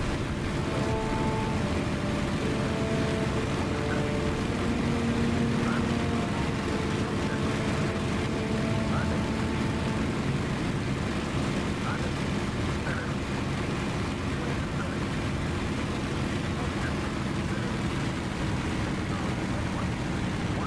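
A propeller aircraft engine drones steadily.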